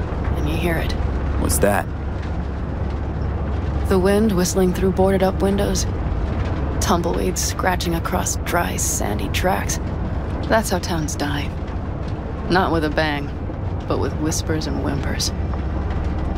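A young woman speaks calmly and quietly, close by.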